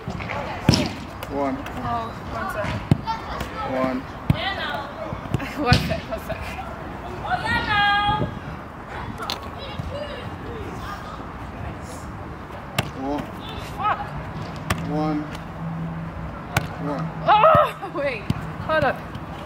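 A football thuds as it is kicked off a foot.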